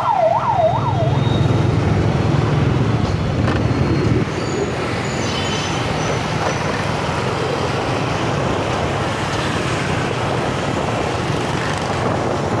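Traffic rumbles along a street outdoors.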